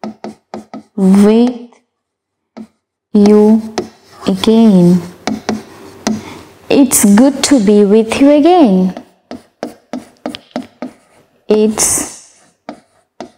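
A woman speaks clearly and slowly, as if teaching.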